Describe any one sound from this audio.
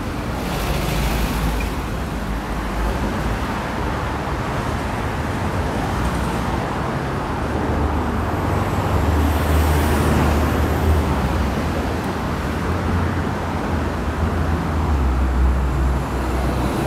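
City traffic rumbles past steadily on a road close by.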